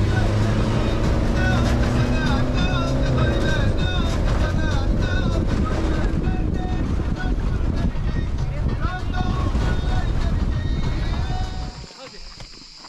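Wind roars past in an open vehicle.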